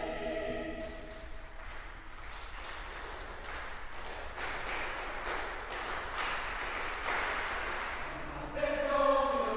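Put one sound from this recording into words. An audience and choir applaud with clapping hands.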